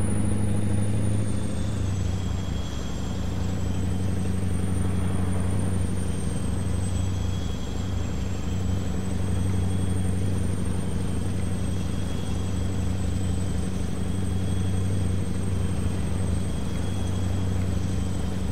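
A truck engine drones steadily at cruising speed.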